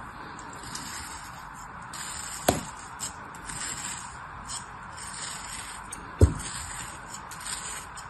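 A blade scrapes lines into packed sand.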